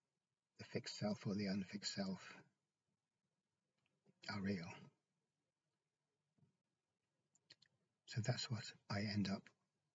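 A middle-aged man speaks calmly and close to a microphone, with pauses.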